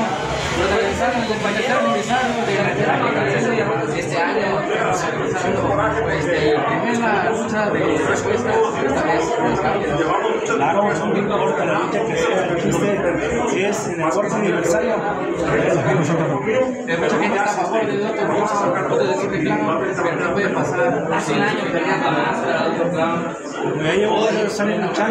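A young man asks questions into a handheld microphone, close by.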